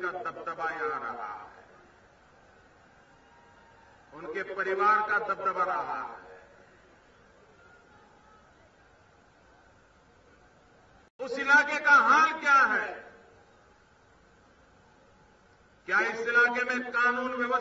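A middle-aged man speaks forcefully into a microphone, heard through loudspeakers, in bursts with pauses.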